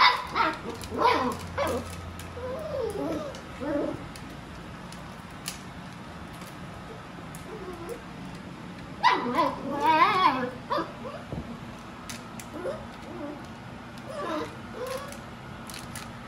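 Puppies' paws patter and scrabble on a rug.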